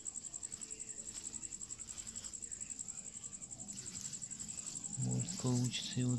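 Grass leaves rustle softly as a hand brushes through them.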